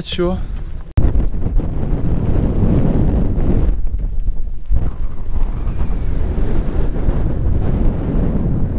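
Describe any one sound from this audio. Wind rumbles strongly across the microphone outdoors.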